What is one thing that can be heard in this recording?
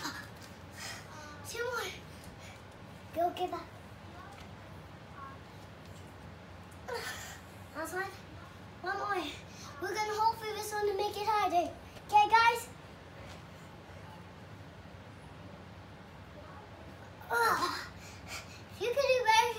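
A young boy talks and strains close by.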